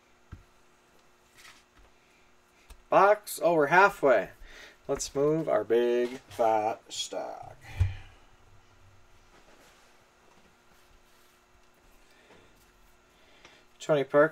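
Playing cards rustle and tap softly as hands handle them.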